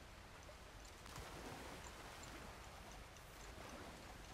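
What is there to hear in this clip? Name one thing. Water splashes around a man's legs as he wades.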